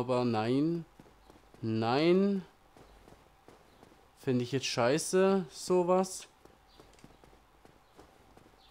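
Footsteps run on stone steps.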